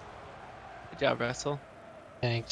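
A ball is struck with a loud thump.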